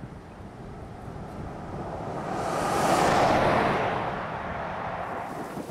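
A vehicle drives past close by on a road.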